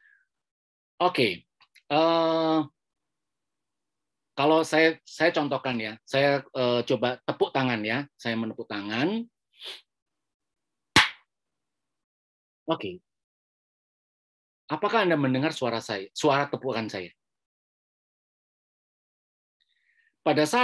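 A middle-aged man speaks with animation through an online call, in short bursts with pauses.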